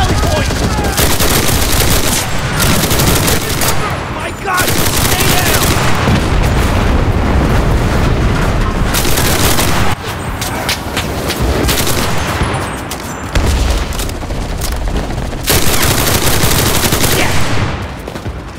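A submachine gun fires rapid bursts at close range.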